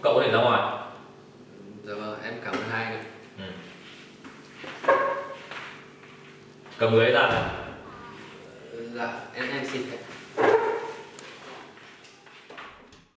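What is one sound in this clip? A young man talks nearby in a calm voice.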